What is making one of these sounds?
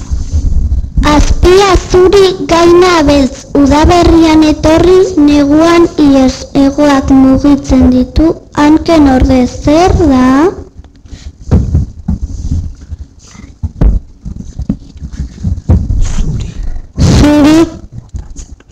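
A young boy speaks with animation into a microphone close by.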